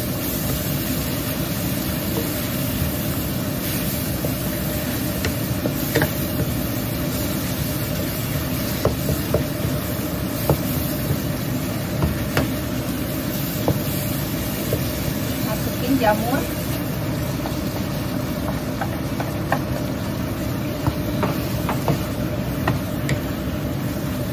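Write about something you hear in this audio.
A wooden spatula scrapes and taps against a pan.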